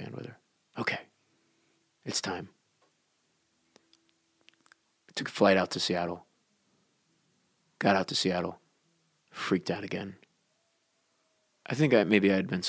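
A man speaks in short, measured phrases with pauses between them.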